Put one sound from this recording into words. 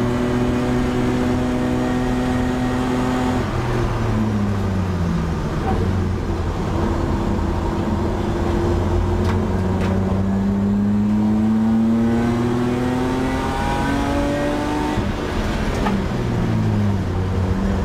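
A race car engine roars loudly from inside the cabin, revving up and down through the gears.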